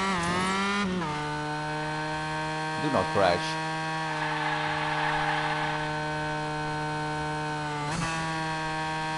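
A racing car engine hums at a high, steady pitch, dropping as the car changes gear.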